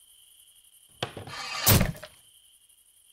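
A heavy blade drops with a loud crash and splits a melon.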